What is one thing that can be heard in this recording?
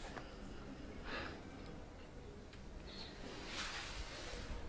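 A man sighs heavily nearby.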